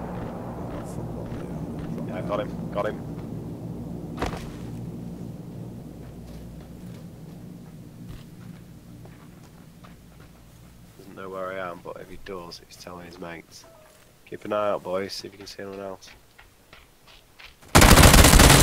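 Footsteps crunch quickly over grass and gravel.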